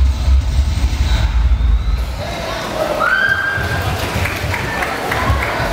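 Loud dance music with heavy bass plays through loudspeakers.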